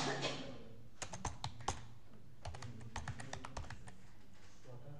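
Keyboard keys clatter quickly in bursts of typing.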